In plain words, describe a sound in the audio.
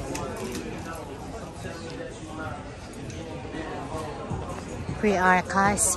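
Many people chatter in a busy indoor space.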